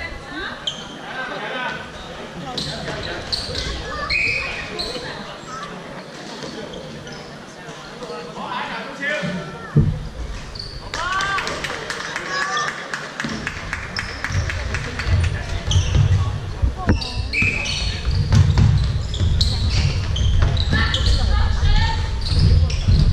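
Shoes squeak sharply on a gym floor, echoing through a large hall.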